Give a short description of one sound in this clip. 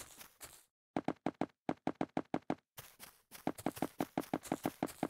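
Blocks are placed with quick, soft clicks.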